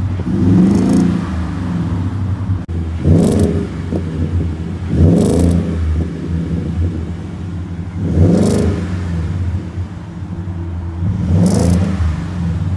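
A truck engine revs up sharply and drops back, several times.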